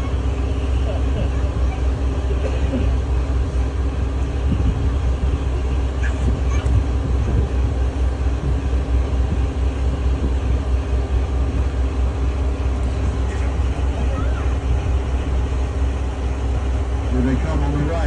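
Water splashes against a boat's hull.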